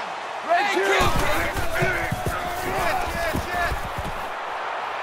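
Football players crash into each other with dull thuds.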